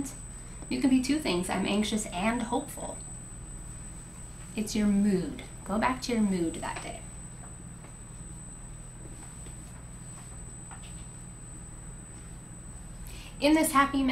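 A woman speaks calmly through a microphone, with long pauses.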